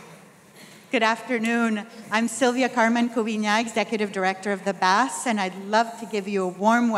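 A woman speaks into a microphone, heard through loudspeakers.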